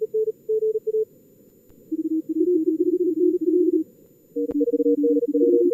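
Morse code beeps play in quick bursts.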